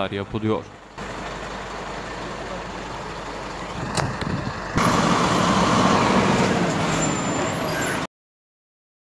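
Rain falls steadily on a wet road.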